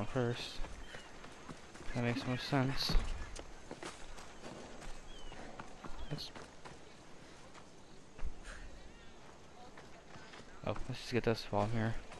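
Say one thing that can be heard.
Footsteps patter quickly on stone and dirt.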